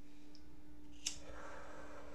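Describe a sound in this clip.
A lighter clicks sharply close by.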